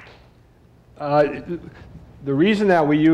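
A middle-aged man speaks through a microphone.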